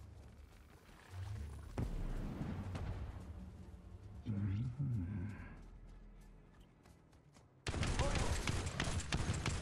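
A creature's footsteps thud along the ground.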